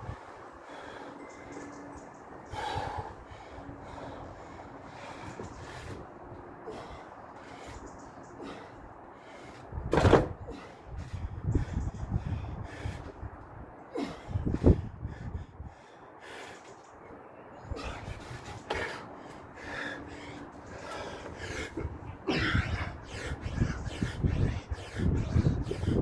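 A man breathes heavily.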